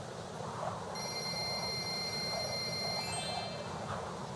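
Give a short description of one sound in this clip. A bright chiming tone rings rapidly.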